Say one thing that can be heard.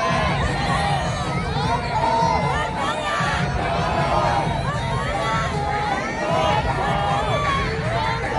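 A crowd of young men and women chants loudly in unison in a large echoing arena.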